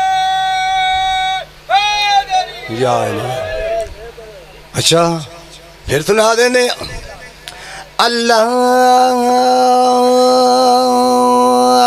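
A man chants loudly in long held notes through a microphone.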